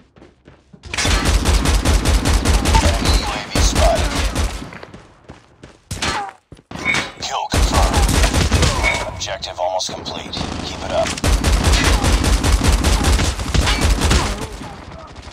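A rapid-fire gun fires in long, rattling bursts.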